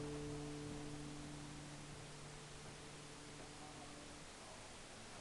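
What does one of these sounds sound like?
An acoustic guitar chord rings out and slowly fades.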